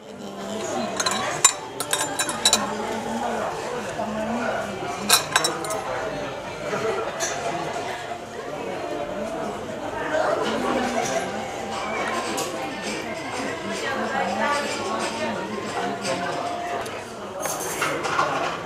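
A spoon clinks against a glass.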